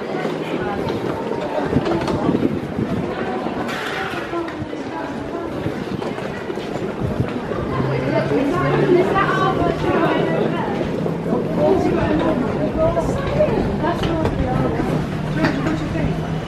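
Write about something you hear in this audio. Voices of adults and children murmur in a large echoing hall.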